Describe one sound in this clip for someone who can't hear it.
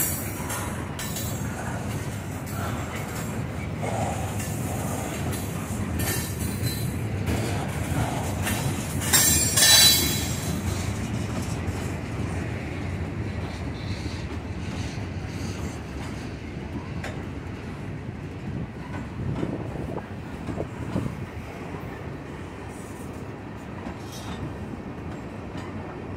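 A freight train rumbles steadily across a wooden trestle close by.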